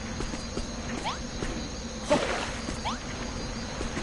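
Short rising chimes ring out.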